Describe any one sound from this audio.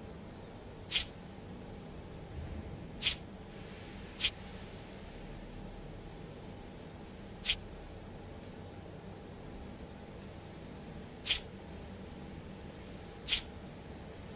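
Short bright clicks sound as game tiles turn into place.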